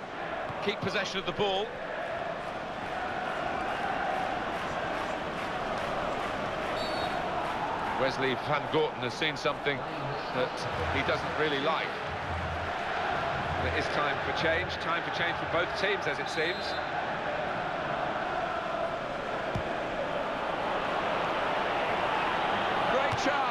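A large crowd roars and chants steadily in a stadium.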